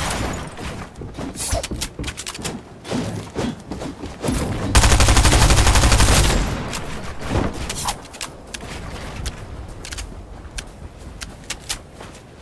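Wooden walls snap into place with sharp clicks.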